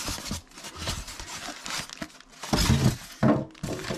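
Foam packing squeaks against cardboard as it is lifted out.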